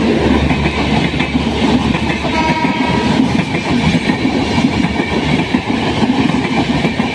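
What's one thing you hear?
A passenger train rushes past close by with a loud rumble.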